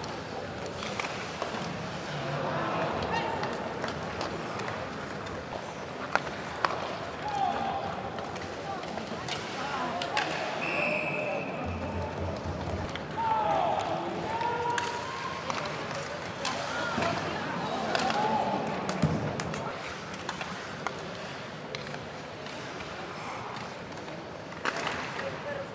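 Hockey sticks click against the puck.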